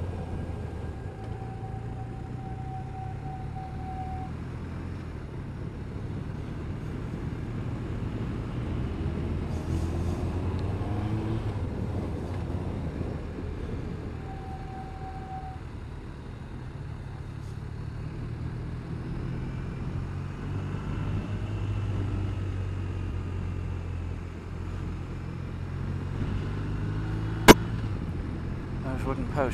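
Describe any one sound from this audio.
A motorcycle engine hums steadily, rising and falling in pitch as it changes speed.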